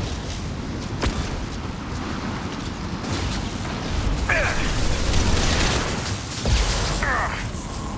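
Low explosions rumble.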